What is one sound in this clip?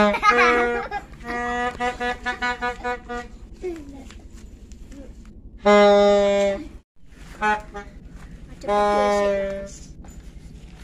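A young child shouts and laughs loudly nearby.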